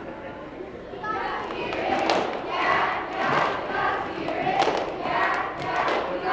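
A group of young girls chants in rhythm in a large echoing hall.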